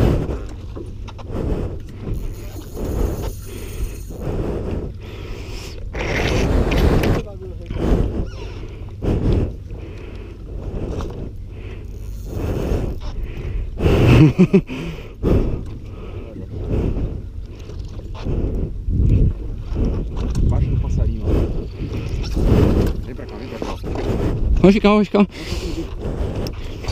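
Wind buffets a microphone outdoors, gusting throughout.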